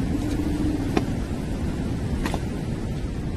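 Footsteps tap slowly on a stone floor.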